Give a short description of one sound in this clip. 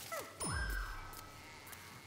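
A small cartoon plant fires quick popping shots.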